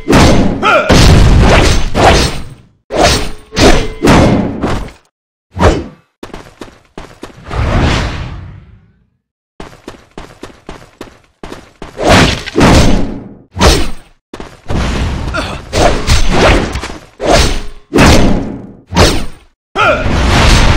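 Swords clash and slash in bursts of heavy impacts.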